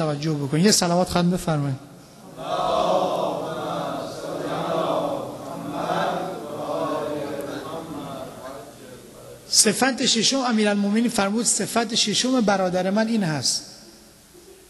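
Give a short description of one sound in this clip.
A young man speaks with feeling through a microphone, his voice echoing in a large hall.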